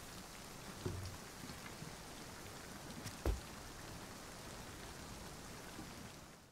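Rain falls steadily with a soft, even hiss.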